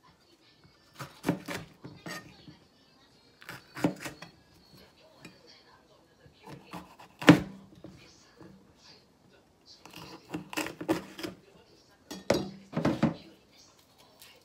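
A knife chops through peppers on a cutting board with sharp knocks.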